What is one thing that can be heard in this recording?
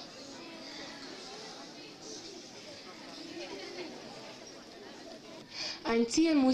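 A crowd of young people murmurs and chatters nearby.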